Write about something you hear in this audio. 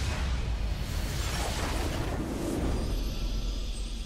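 A magical blast crackles and explodes.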